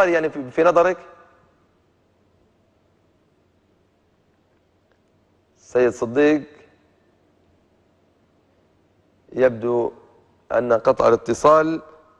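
A young man speaks calmly into a microphone in short phrases with pauses.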